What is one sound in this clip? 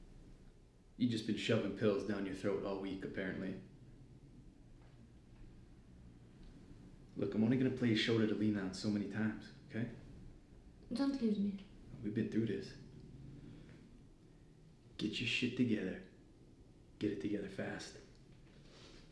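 A man speaks calmly and close by, in short phrases.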